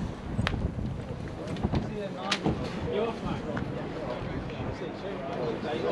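A crowd of men and women chatters outdoors at a distance.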